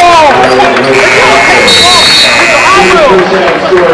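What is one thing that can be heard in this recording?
A scoreboard buzzer sounds with a long steady blare.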